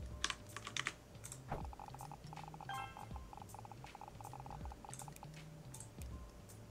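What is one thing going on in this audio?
Game music plays with a low bouncing beat.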